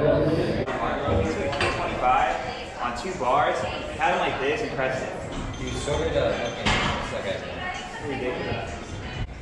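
A man grunts with effort while lifting a weight.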